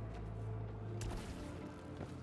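A sharp whoosh sweeps past.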